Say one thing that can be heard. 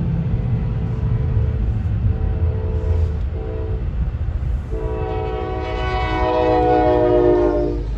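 Railway crossing bells ring steadily.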